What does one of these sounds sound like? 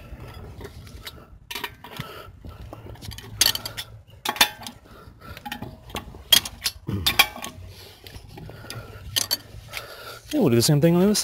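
A metal wrench clicks and clanks as it loosens wheel nuts.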